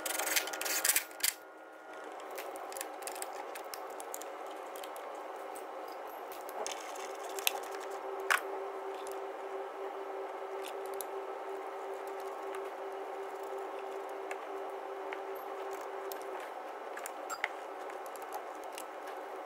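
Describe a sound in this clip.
Metal tools clink against engine parts.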